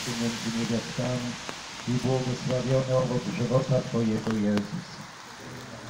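A group of men and women sing together outdoors, close by.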